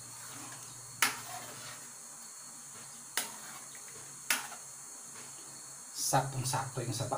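A metal spoon clinks against a pan as it stirs.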